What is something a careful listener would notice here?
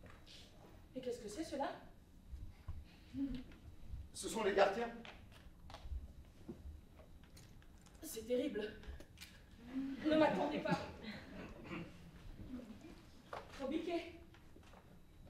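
An older man speaks clearly in a quiet, roomy hall.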